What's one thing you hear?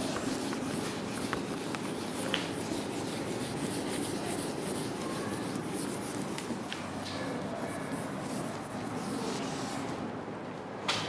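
A woman wipes a whiteboard with an eraser.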